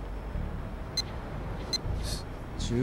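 Short electronic menu beeps chime.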